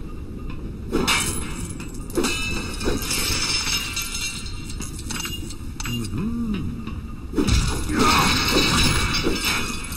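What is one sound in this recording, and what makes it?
Objects smash and clatter apart.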